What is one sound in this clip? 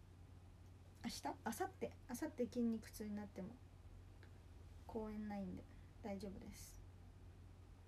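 A young woman speaks softly and close by, in short bursts.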